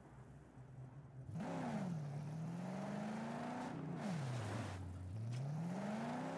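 A car engine idles low, then revs up and down.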